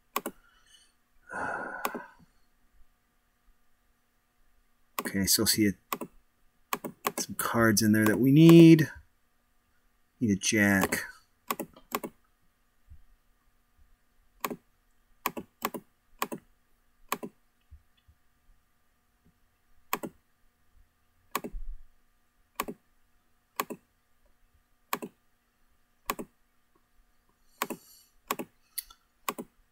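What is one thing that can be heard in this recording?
Short clicks sound again and again.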